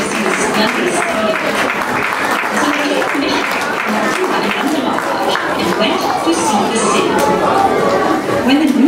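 A crowd of children and adults chatter loudly all around in a large hall.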